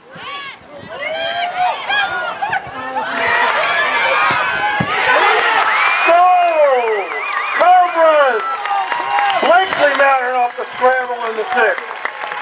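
A crowd of spectators nearby cheers and shouts excitedly.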